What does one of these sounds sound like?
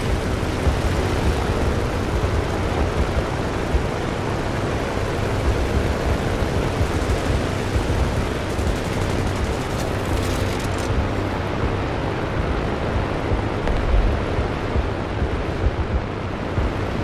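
A propeller aircraft engine drones loudly and steadily.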